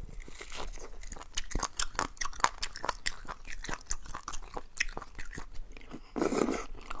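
A knife scrapes and clicks against bone close to a microphone.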